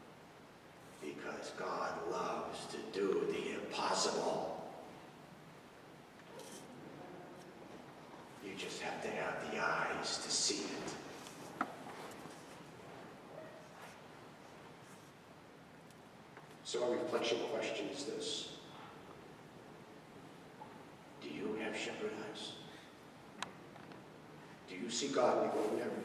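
A middle-aged man speaks calmly through a microphone, in bursts with pauses, echoing in a large hall.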